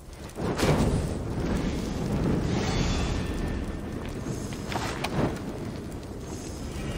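A fire crackles and hisses nearby.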